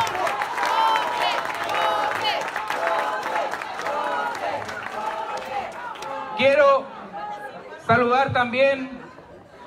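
A crowd of people chatters and cheers in a large echoing hall.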